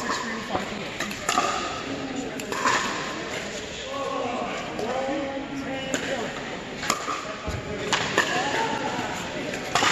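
Paddles pop against plastic balls in a large echoing hall.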